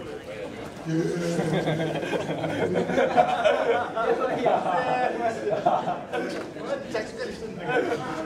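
Young men talk and laugh together in an echoing corridor.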